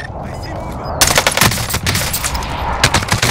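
Rapid gunfire bursts out nearby.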